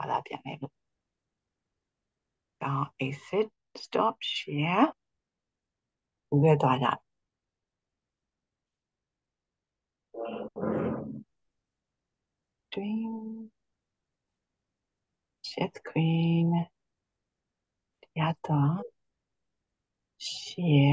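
A middle-aged woman speaks slowly and clearly over an online call, in short phrases with pauses.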